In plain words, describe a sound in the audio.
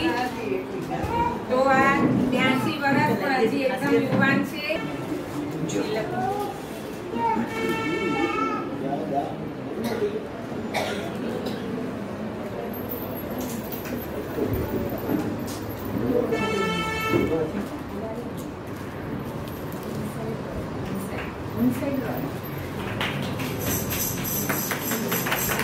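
Several women talk and chatter nearby in a room.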